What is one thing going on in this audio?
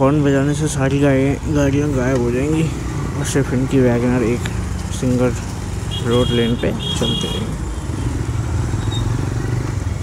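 Traffic rumbles nearby in a busy street.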